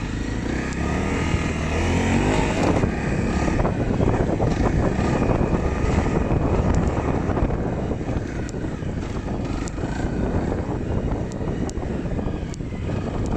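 A motorcycle engine revs and rumbles up close.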